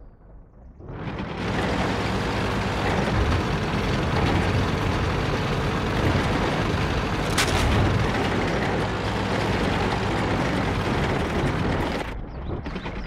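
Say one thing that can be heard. A tank engine rumbles as the tank drives.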